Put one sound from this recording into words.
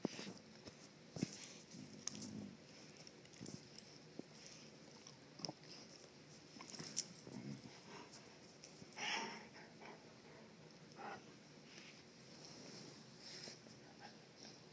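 Two dogs play close by, panting and snuffling.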